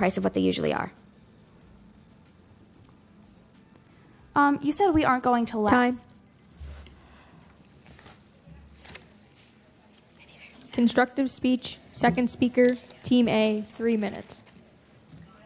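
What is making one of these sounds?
A young girl speaks clearly into a microphone.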